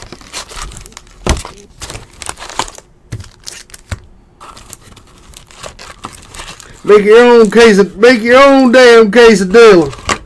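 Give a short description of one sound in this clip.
Foil card packs crinkle as they are pulled from a box.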